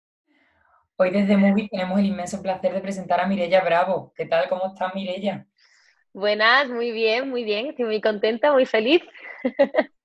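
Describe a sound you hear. A young woman laughs over an online call.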